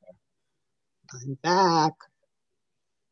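A man calls out a long, drawn-out word over an online call.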